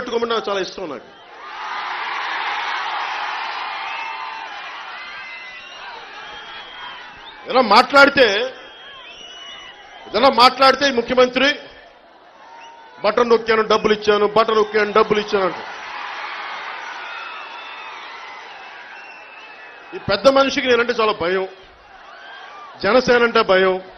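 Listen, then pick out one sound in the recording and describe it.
A large crowd cheers and roars outdoors.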